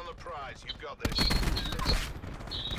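An automatic rifle fires a burst of gunshots.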